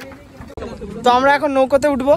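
Another young man speaks excitedly right up close.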